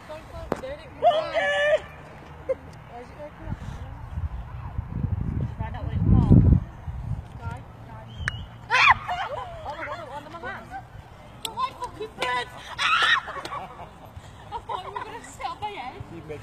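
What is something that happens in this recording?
Children shout and call out nearby, outdoors.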